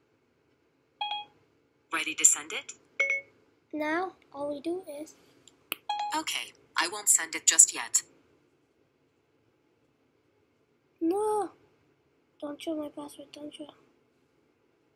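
A synthetic voice answers through a small phone speaker.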